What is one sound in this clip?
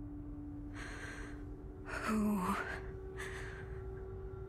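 A young woman asks a short question quietly.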